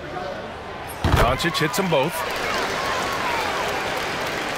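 An arena crowd cheers loudly.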